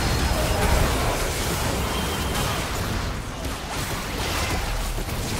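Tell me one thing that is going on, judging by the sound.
Fantasy game spell effects crackle and burst.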